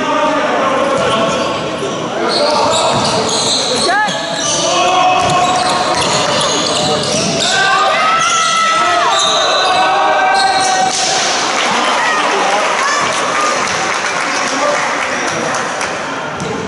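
Young men shout to each other across the hall.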